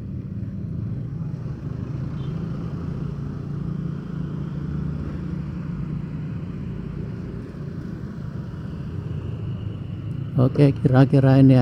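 Small motorcycles hum along a dirt road in traffic.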